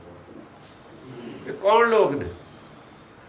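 An elderly man speaks briefly and calmly close by.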